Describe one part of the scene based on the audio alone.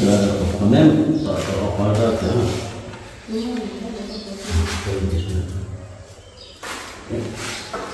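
A trowel scrapes wet mortar.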